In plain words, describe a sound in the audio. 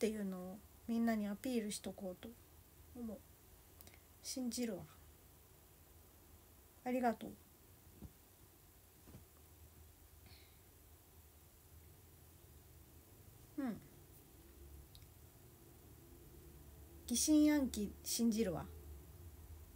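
A young woman speaks softly and close by, in short bursts with pauses.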